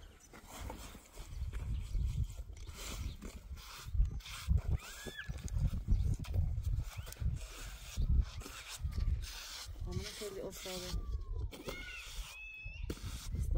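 A trowel smooths wet cement with rasping strokes.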